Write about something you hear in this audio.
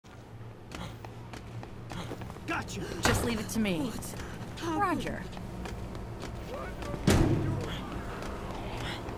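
Footsteps tread steadily on a hard floor.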